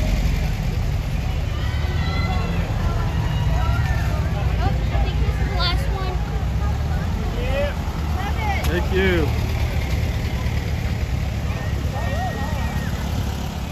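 People on the roadside chatter and call out.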